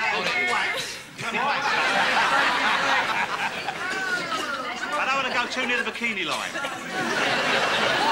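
Several men talk and laugh together, close by.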